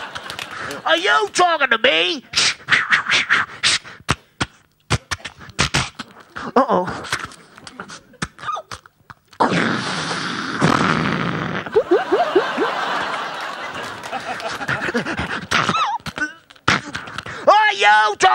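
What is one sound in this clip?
A man sings high, wavering notes into a microphone.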